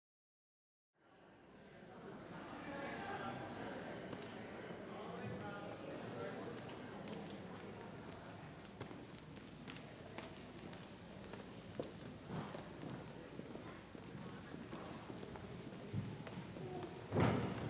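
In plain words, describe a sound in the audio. A seated audience murmurs and chatters in a large echoing hall.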